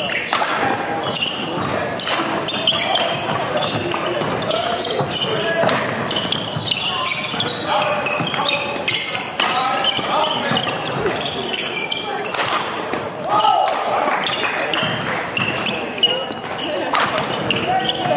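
Many voices murmur and call out in a large echoing hall.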